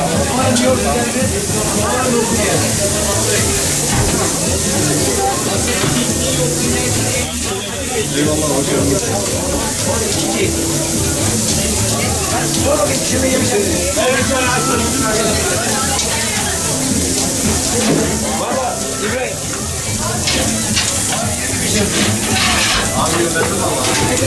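Meat sizzles loudly on a hot grill.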